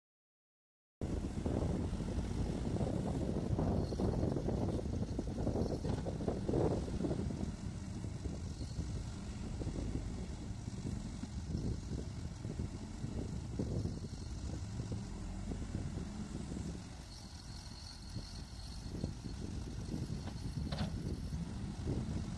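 A backhoe loader's diesel engine rumbles close by.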